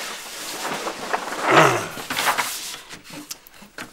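A large sheet of paper rustles and crackles.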